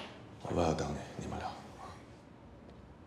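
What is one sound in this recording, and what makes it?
A woman speaks briefly nearby.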